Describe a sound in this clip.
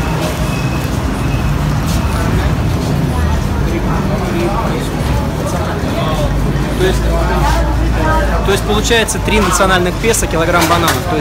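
Several people chatter in the background outdoors.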